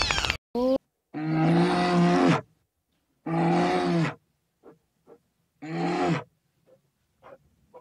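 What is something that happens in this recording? A bear roars loudly in bursts.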